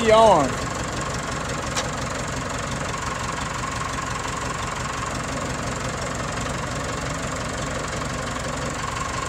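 A tractor engine idles steadily close by.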